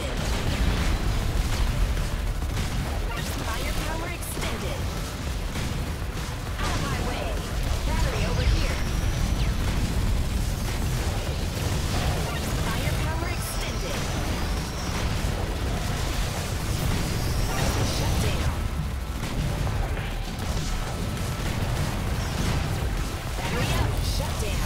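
Video game blasts and explosions crackle rapidly.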